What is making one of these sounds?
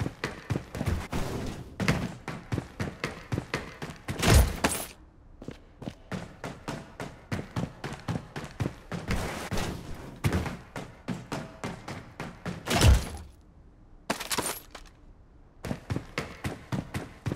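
Footsteps clang quickly on a metal walkway.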